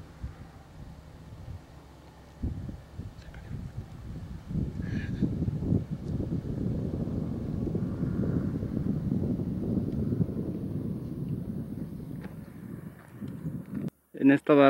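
Wind blows in gusts across the microphone outdoors.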